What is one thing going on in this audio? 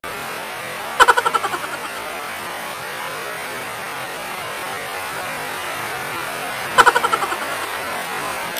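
A young woman laughs briefly.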